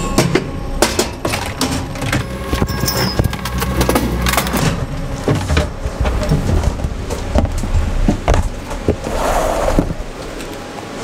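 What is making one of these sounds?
Fabric and plastic rustle and knock close by.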